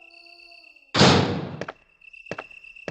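A heavy door creaks open and thuds.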